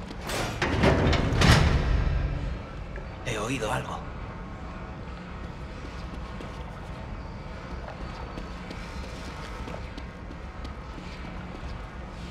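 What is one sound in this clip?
Footsteps walk slowly on a stone floor.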